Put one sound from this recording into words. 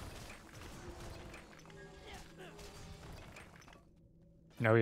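Magic spells crackle and hit enemies in a video game.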